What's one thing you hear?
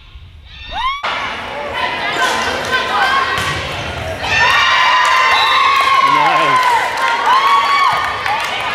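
Teenage girls call out and shout to each other in a large echoing hall.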